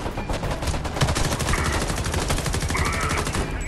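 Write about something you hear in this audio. An assault rifle fires rapid bursts.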